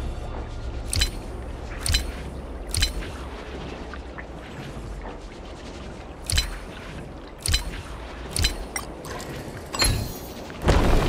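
Game interface clicks and chimes sound as commands are entered.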